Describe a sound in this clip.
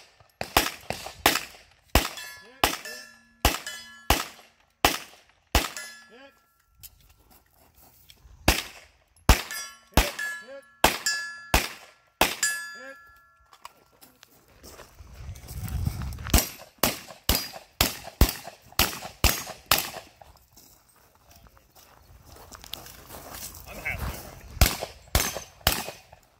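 Pistol shots crack loudly in quick bursts outdoors.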